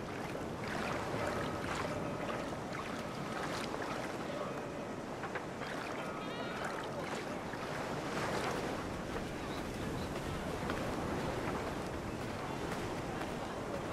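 Gentle waves lap on a shore.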